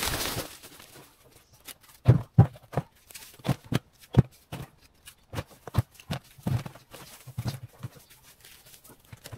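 A plastic bin thumps and scrapes on the ground.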